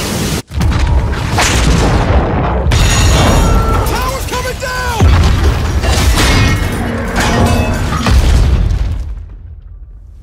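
A tower crashes down with a loud, deep rumble.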